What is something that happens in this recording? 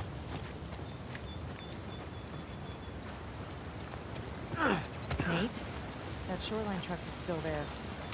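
Footsteps brush through grass.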